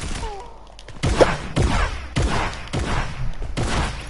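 A pickaxe swings with sharp whooshing hits.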